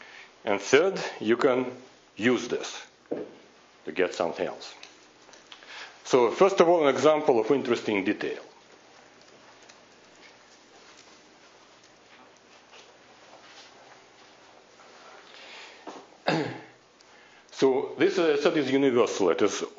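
A man lectures through a microphone, pausing now and then.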